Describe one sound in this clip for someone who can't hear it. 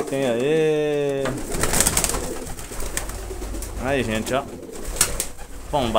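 Pigeon wings flap and flutter.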